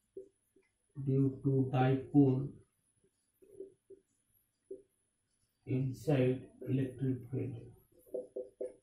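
A young man speaks calmly, explaining as he goes.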